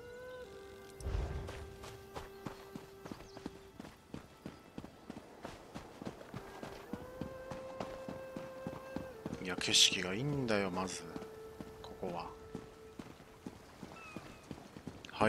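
Footsteps tread at a steady pace on stone.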